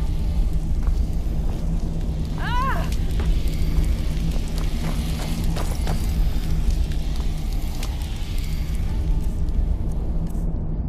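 A glowing magic spell hums with a low drone.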